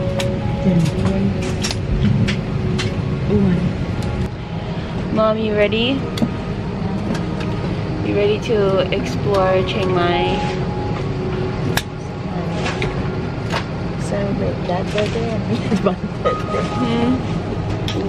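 An aircraft cabin hums steadily in the background.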